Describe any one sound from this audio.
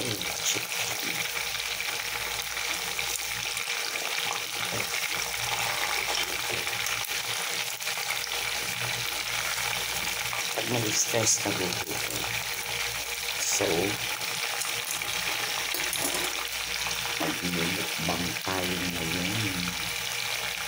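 Oil sizzles and bubbles steadily as meat fries.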